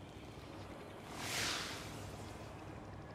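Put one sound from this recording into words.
A magical whoosh swells and fades.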